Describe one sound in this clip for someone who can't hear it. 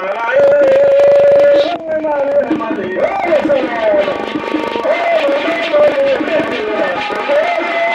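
A group of people sings loudly together in a lively chant.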